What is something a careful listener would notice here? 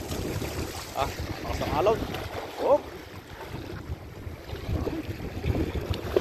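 Small waves wash against rocks.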